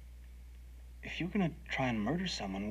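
A younger man answers in a low, hesitant voice, close by.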